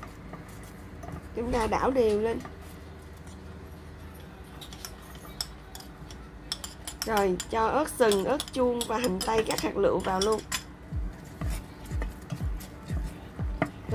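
A wooden spatula stirs thick sauce in a metal pot.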